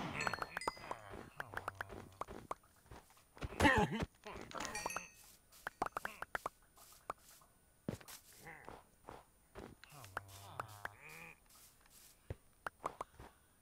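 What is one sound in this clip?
Small items pop as they are picked up.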